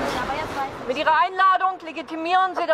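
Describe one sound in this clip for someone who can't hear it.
A woman reads out loudly nearby.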